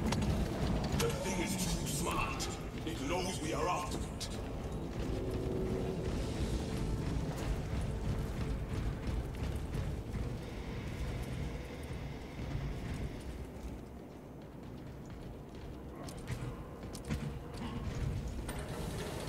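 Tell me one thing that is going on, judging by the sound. Heavy armoured footsteps clank on a metal floor.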